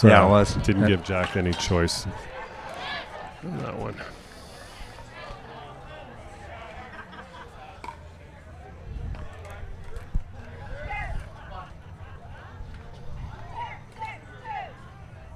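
A crowd of men and women chatter at a distance outdoors.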